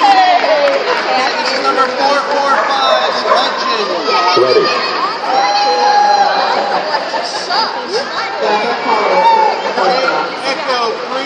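A crowd of spectators chatters nearby in a large echoing hall.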